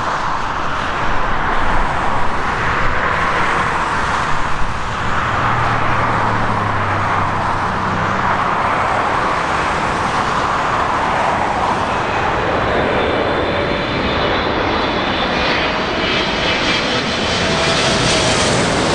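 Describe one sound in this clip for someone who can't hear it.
A Boeing 777 jet airliner roars low overhead on landing approach, its engines whining as it nears.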